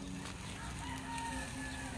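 A metal fork scrapes against a grill grate.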